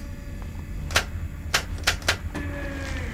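Switches click sharply one after another.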